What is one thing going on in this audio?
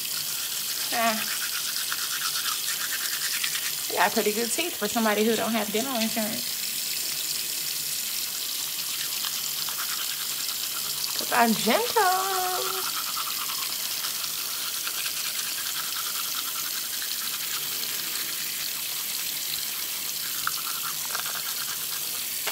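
A toothbrush scrubs against teeth.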